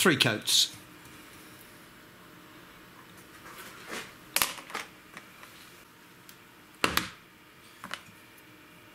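Small wooden boards clack down onto a hard surface.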